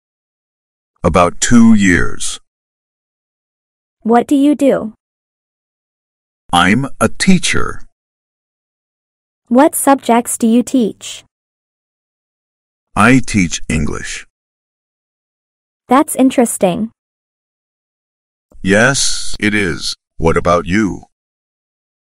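A young woman answers calmly and clearly in short phrases.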